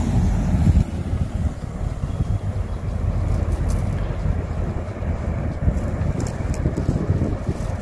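Wind blows hard outdoors, rumbling low and steady.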